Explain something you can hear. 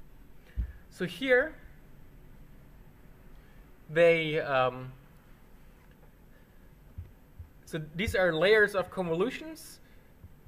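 A young man speaks calmly and close to a microphone, in short bursts with pauses.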